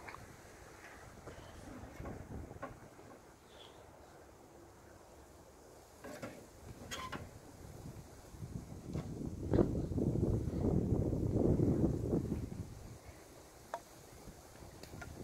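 Wood knocks and metal clinks as a man tends a small stove.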